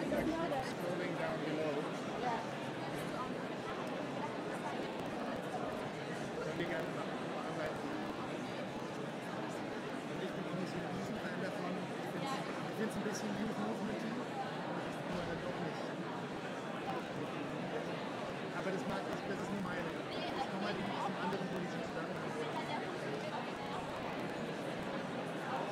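A man speaks to an audience.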